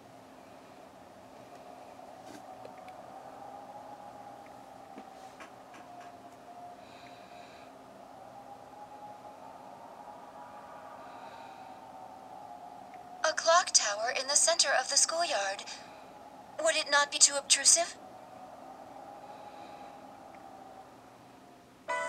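Soft, gentle video game music plays from a small handheld speaker.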